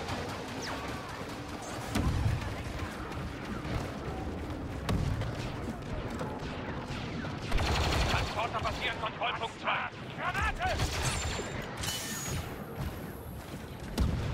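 Blaster shots crack and thud nearby.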